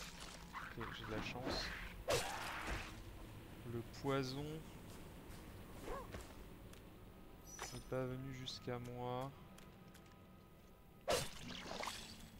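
A sword swings and strikes.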